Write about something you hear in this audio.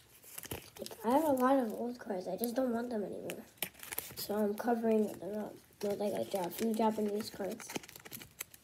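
A young girl speaks calmly close by.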